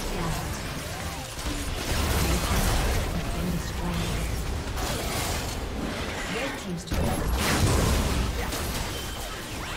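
Game spells and attacks whoosh and crackle in a noisy battle.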